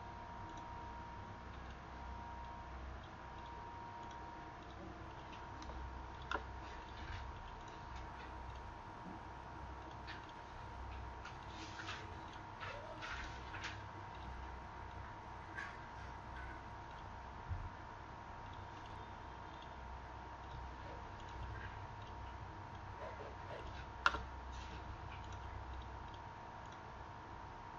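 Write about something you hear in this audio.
A young man speaks quietly and calmly into a microphone.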